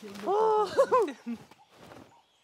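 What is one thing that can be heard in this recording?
A cartoon monkey speaks in a high, excited voice.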